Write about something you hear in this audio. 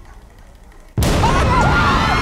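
A water balloon bursts and splashes onto the floor.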